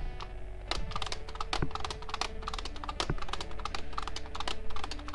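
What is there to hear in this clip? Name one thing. A plastic guitar controller's strum bar and buttons click rapidly.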